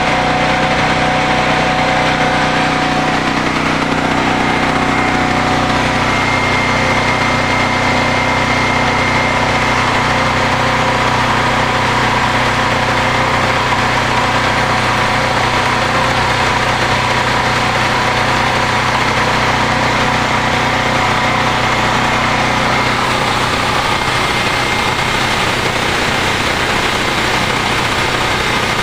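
A generator engine runs with a steady, loud hum close by.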